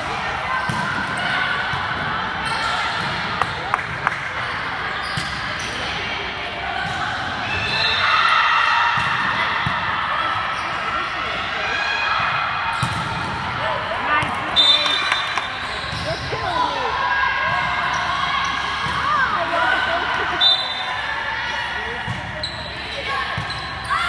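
Girls shout and call out to each other across a large echoing gym.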